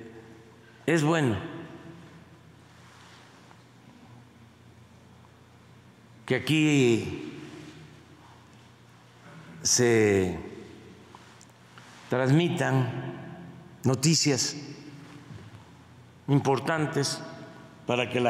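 An elderly man speaks through a microphone in short bursts with pauses between them.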